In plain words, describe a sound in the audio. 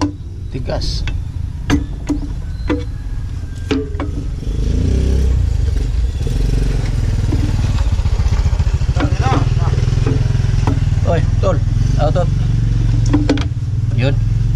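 Metal parts clink and scrape as a motorcycle part is pulled off by hand.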